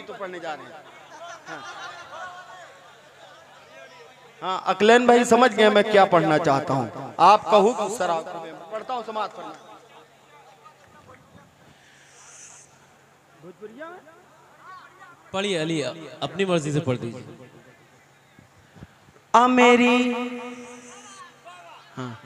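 A young man recites poetry expressively through a microphone, heard over loudspeakers in a large hall.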